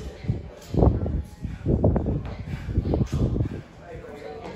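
Feet thud repeatedly on a hard floor in an echoing room.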